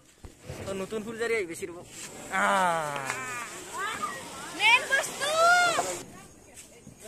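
A firework fountain hisses and crackles.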